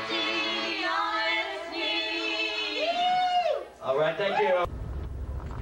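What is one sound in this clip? A woman sings loudly into a microphone.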